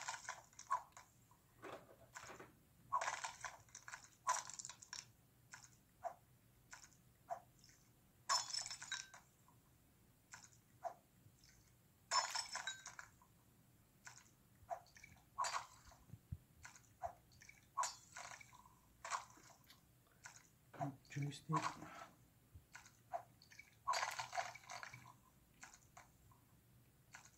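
Short electronic game sound effects chirp and blip from a small speaker.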